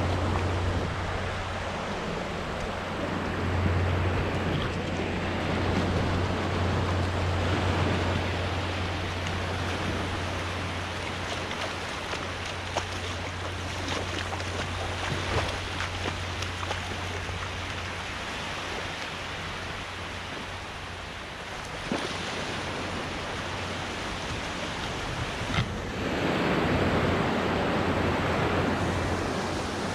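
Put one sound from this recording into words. Wind blows steadily across a microphone outdoors.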